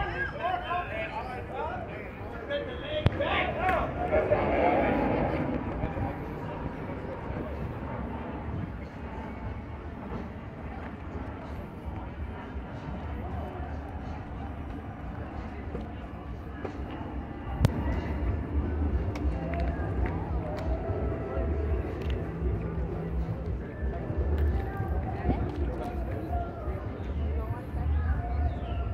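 A crowd chatters in the distance outdoors.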